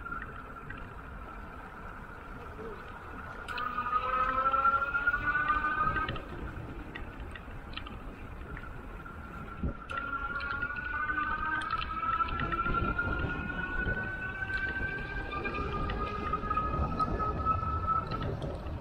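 Wind rumbles across a moving microphone outdoors.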